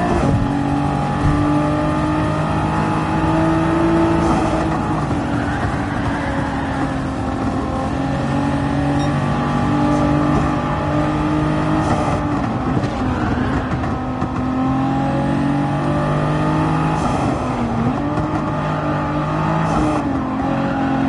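A racing car engine roars steadily, rising and falling in pitch as gears shift.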